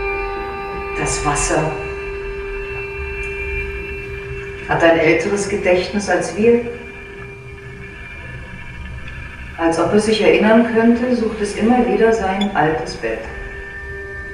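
A woman speaks clearly and deliberately on a stage.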